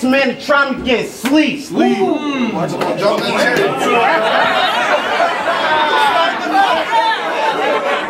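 A crowd cheers and shouts loudly in an echoing room.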